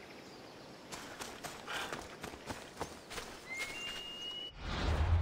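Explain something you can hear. Footsteps run over grass and rocky ground.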